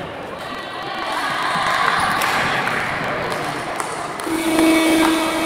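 Young women talk among themselves in a large echoing hall.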